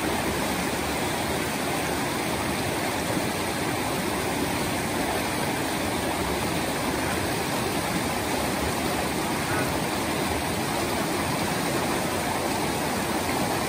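Boots splash through shallow rushing water.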